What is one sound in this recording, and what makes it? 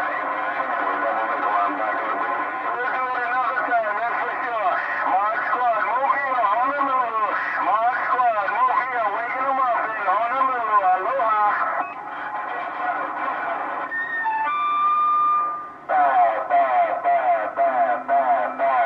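A radio receiver plays a warbling, chirping data signal through its loudspeaker.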